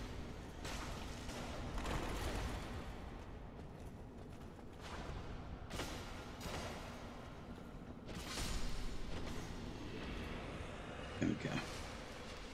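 Swords clash and strike armour with sharp metallic clangs.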